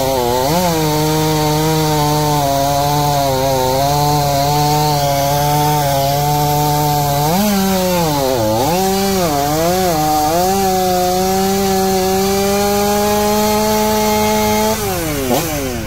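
A chainsaw roars loudly as it cuts through a log, its engine dipping and rising.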